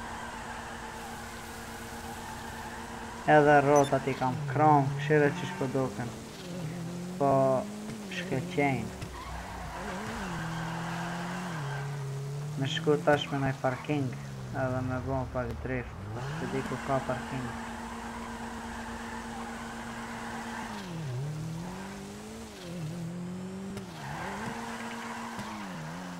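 Tyres screech on a wet road.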